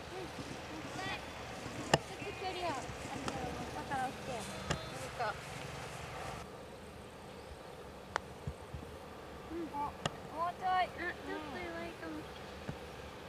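Young women chat and call out outdoors.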